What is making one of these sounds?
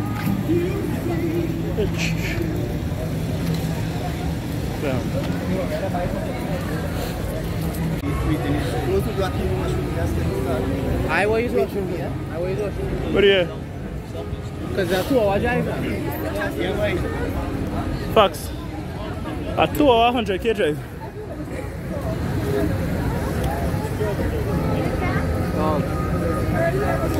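Car engines idle and hum in busy street traffic.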